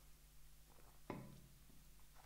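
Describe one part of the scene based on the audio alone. A mug is set down on a table with a knock.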